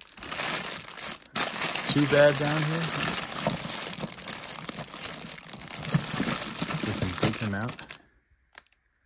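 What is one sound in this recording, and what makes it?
Plastic bags crinkle and rustle as a hand rummages through them.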